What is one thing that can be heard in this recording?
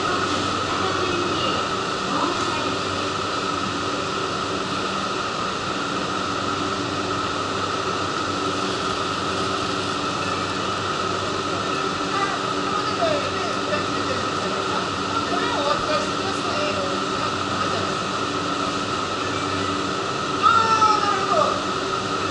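A parked train hums steadily nearby.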